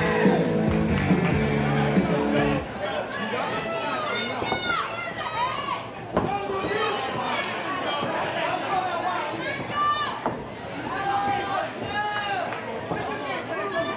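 A crowd in a large hall cheers and shouts throughout.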